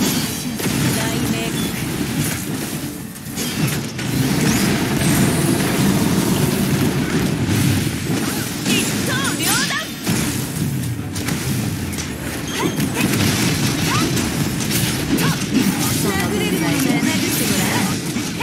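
Game sword slashes and impacts clash rapidly.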